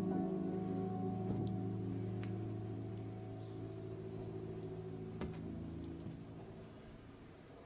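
A keyboard chord rings out in a large hall and slowly fades.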